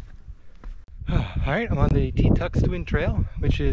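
A man talks to a close microphone.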